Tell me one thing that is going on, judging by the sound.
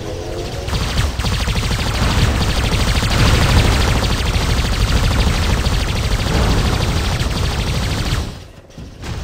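Rocket thrusters roar loudly.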